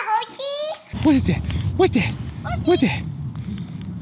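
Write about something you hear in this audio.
A dog whines excitedly close by.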